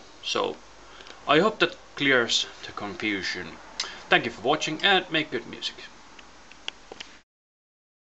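A young man talks close to a microphone, calmly and casually.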